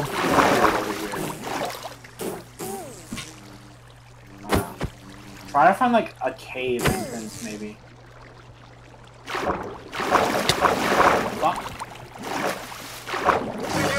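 Water splashes and gurgles as a swimmer moves through it.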